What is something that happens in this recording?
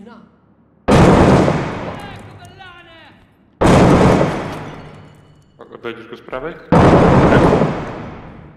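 Heavy gunshots boom and echo through empty rooms.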